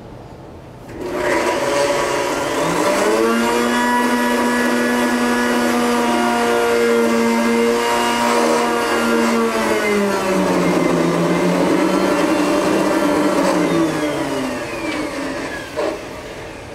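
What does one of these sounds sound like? A blender whirs loudly, its motor slowing and falling in pitch before it stops.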